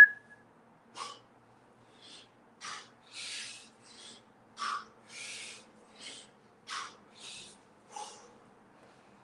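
A man breathes out hard in short bursts.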